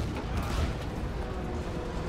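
Bullets ping and rattle against armour.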